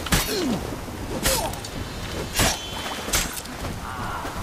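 Sword blows strike sharply several times.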